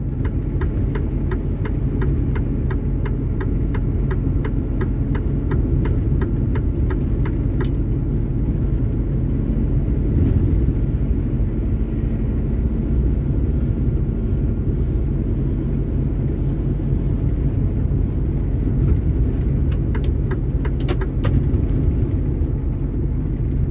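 A heavy truck engine drones low and steady from inside the cab.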